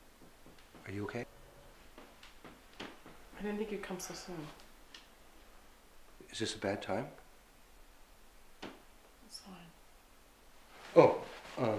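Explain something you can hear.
An elderly man speaks calmly and quietly nearby, in short phrases.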